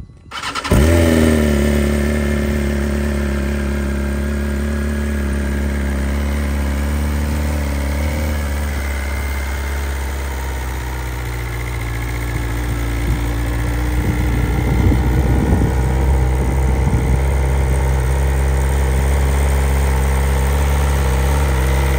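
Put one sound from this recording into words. A motorcycle engine starts with a roar and settles into a deep, loud, rumbling idle.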